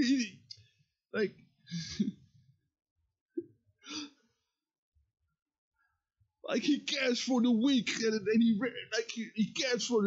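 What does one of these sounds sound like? A young man speaks close to a microphone, in short bursts and then with animation.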